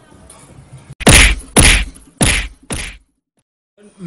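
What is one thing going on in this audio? Bodies thump and scuffle.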